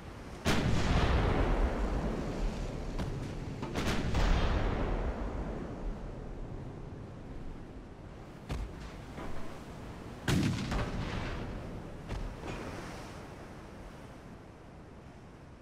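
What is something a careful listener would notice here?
Heavy guns fire with loud booms that roll away in long rumbles.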